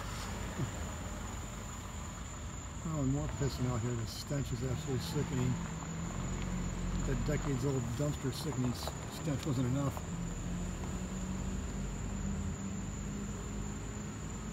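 A car engine rumbles as a vehicle drives slowly past outdoors.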